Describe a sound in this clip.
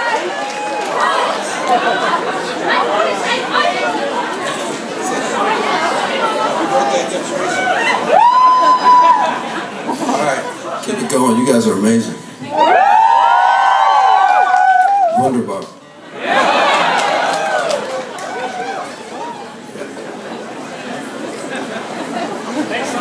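A crowd chatters and cheers throughout.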